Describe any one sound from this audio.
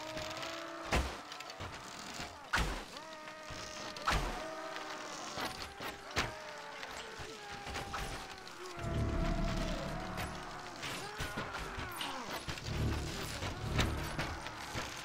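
A bowstring twangs sharply as arrows are loosed, several times.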